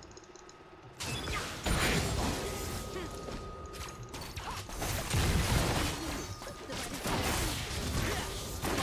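Spell blasts and clashing weapons burst from a video game.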